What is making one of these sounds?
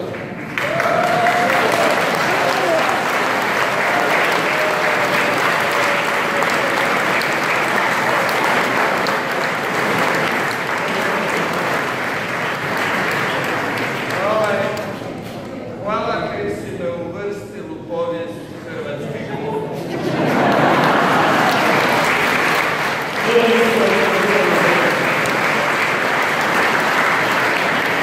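A crowd applauds and cheers loudly in an echoing hall.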